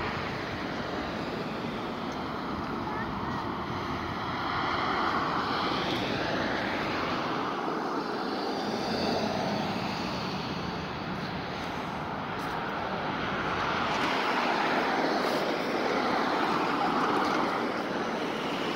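Road traffic swishes past steadily, with cars rising and fading outdoors.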